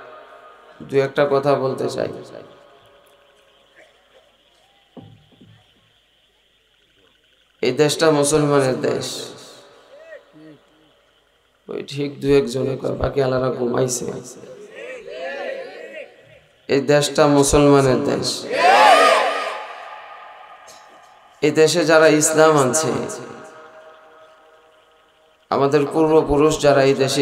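A middle-aged man preaches loudly and with passion into a microphone, his voice echoing through loudspeakers.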